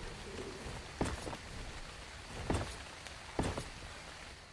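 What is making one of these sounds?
Stone blocks thud into place.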